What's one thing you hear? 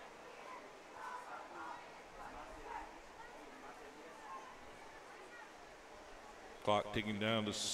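A crowd murmurs faintly in the distance.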